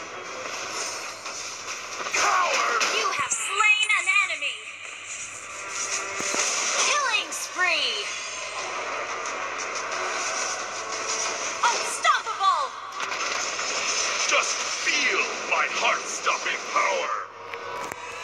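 Game battle effects clash, zap and whoosh in quick bursts.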